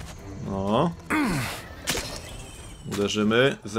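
A sword strikes a creature with a sharp hit.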